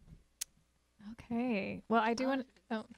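Young women speak together into a microphone.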